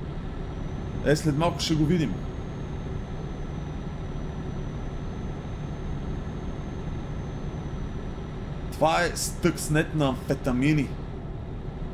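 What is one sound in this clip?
A young man speaks into a microphone with animation.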